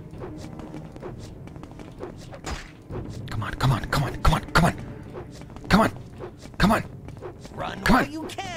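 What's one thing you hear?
An elderly man talks into a microphone with animation.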